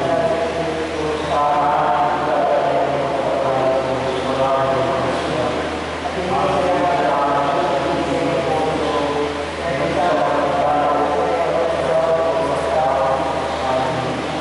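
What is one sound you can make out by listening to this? A woman sings through a loudspeaker, echoing in a large hall.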